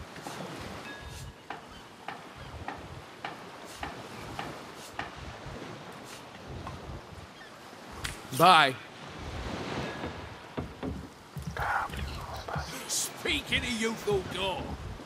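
Water laps against a wooden pier.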